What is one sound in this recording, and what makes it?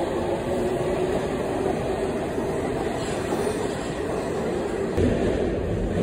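A subway train rushes into the station with a loud roar.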